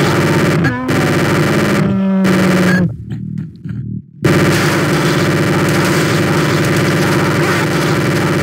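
A pistol fires repeatedly in loud, sharp shots.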